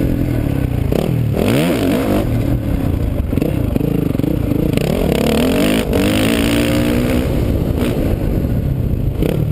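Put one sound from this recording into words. A dirt bike engine revs loudly close by, rising and falling in pitch.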